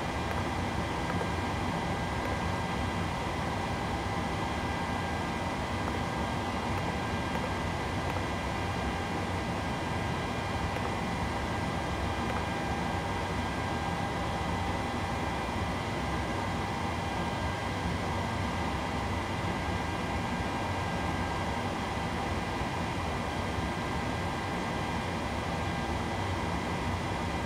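A steady whirring hum of aircraft systems goes on.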